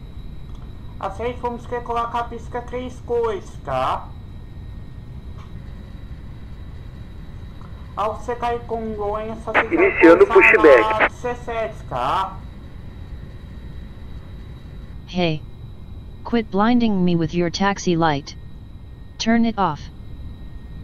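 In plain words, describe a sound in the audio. A young man speaks casually into a close microphone, in short bursts.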